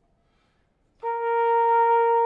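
Brass instruments play a loud sustained chord in an echoing hall.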